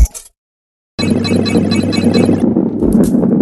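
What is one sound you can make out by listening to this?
Coins jingle as a ball collects them.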